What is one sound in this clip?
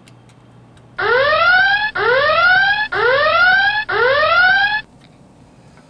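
An electronic alarm sounds in rapid rising tones.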